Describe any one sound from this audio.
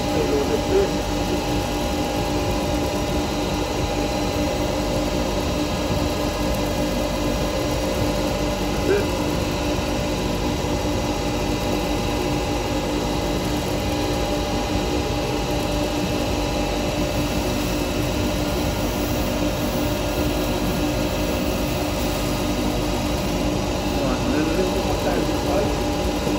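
A wood lathe motor hums steadily.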